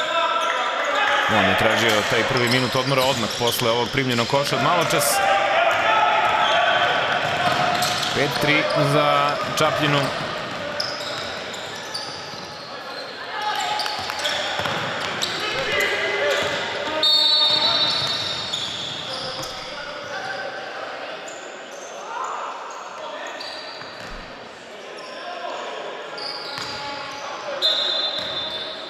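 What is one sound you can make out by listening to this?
A basketball bounces on a wooden floor in an echoing hall.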